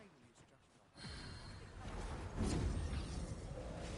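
A magical shimmer swells and hums.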